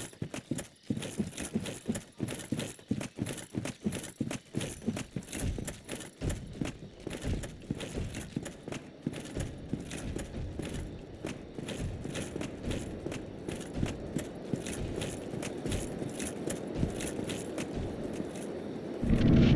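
Armored footsteps clink quickly on the ground.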